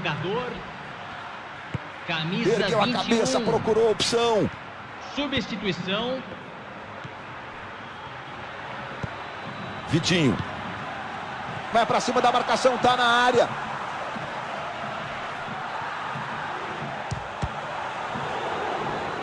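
A large crowd murmurs and roars steadily in a stadium.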